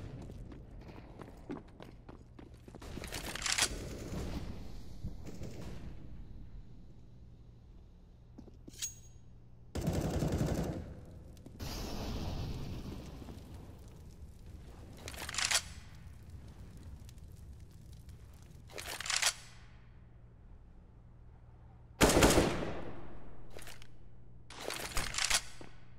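Footsteps run over hard ground and sand.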